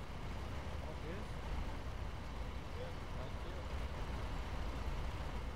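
A fire engine's motor idles with a steady low rumble.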